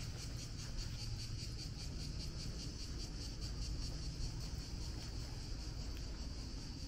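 Footsteps tap steadily on pavement outdoors.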